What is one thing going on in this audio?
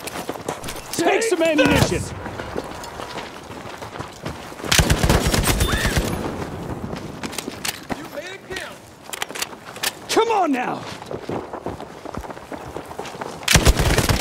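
A rifle fires rapid shots that crack sharply.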